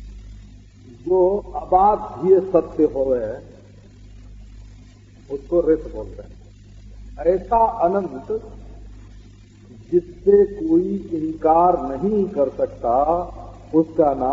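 An elderly man speaks calmly into a microphone, with pauses.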